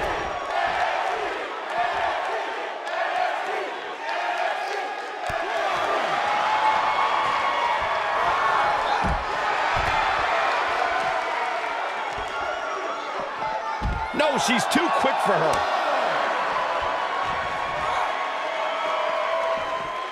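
A large crowd cheers and roars steadily in a big hall.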